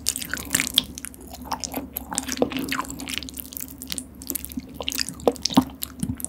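Chopsticks scrape and tap against a bowl of saucy noodles.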